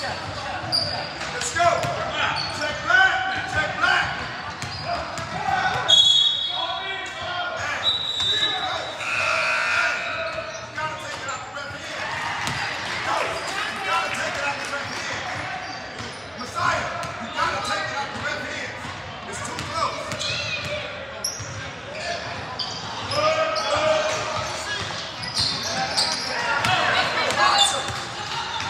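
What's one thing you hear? Sneakers squeak on the hardwood court.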